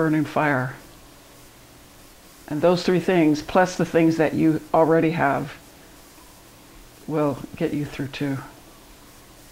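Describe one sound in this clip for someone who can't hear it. An older woman speaks calmly and warmly into a close microphone.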